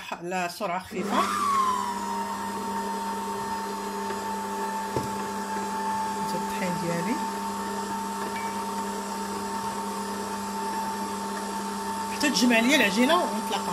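An electric stand mixer starts up and whirs steadily as it beats a batter.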